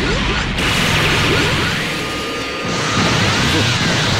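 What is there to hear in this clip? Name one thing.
An energy beam blasts with a loud roaring whoosh.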